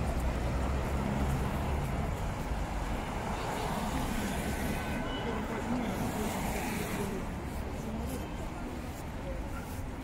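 Car traffic rumbles past steadily on a wide street.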